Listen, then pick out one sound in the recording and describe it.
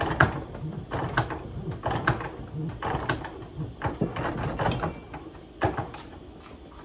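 A hand-operated metal press clicks and rasps against a coin.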